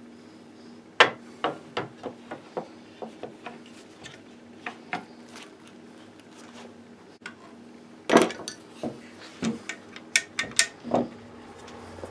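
Small metal parts click and tap against wood.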